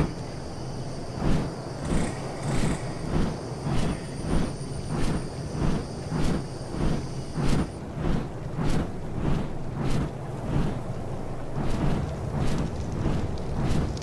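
Large leathery wings flap in a steady rhythm.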